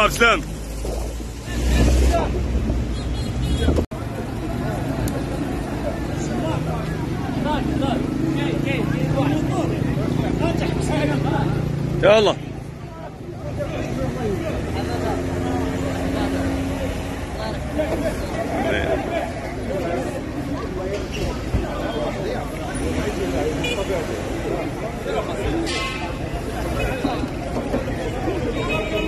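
A crowd of men and women talks outdoors.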